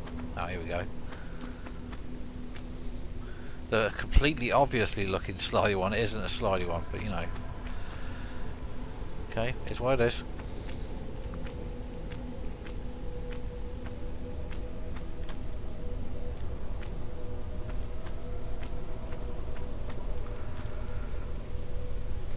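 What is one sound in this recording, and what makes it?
A woman's footsteps tap on stone.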